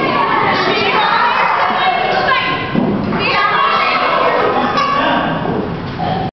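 Many children chatter and shout at once in an echoing hall.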